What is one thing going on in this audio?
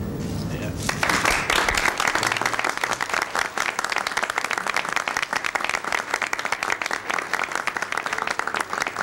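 A crowd applauds loudly outdoors.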